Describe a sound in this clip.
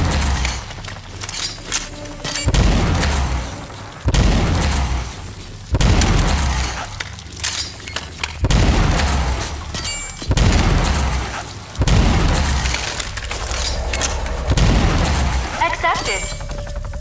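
Heavy energy cannon blasts boom again and again.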